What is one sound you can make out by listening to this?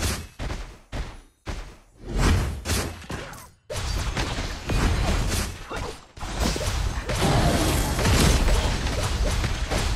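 Sword swipes and magic blasts clash and whoosh in quick bursts.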